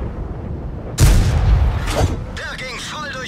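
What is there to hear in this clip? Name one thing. A shell explodes with a heavy blast.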